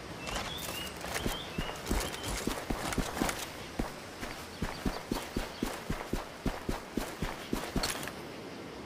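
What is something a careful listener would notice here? Footsteps rustle quickly through grass.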